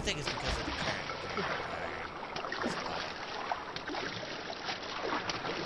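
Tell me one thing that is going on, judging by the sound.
Water splashes and rushes as something skims quickly across its surface.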